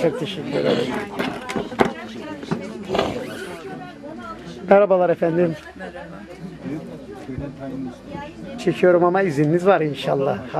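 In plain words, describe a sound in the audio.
Middle-aged women talk and laugh together nearby.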